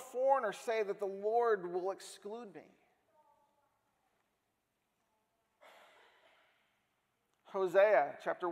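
A man speaks calmly and earnestly through a microphone, with pauses.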